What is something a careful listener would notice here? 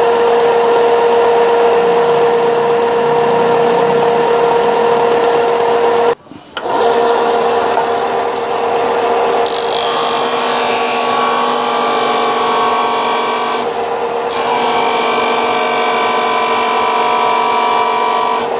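An electric sander motor hums and whines steadily.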